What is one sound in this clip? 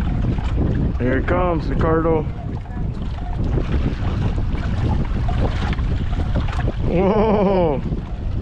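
A man calls out from the water nearby.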